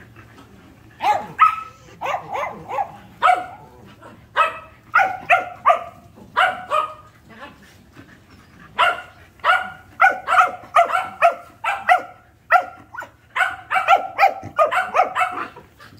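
A small dog barks sharply over and over, close by.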